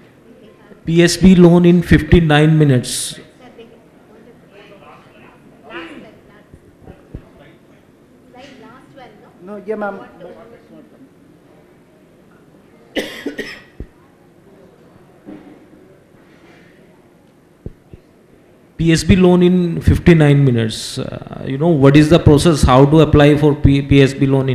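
A man speaks calmly into a microphone, close and amplified.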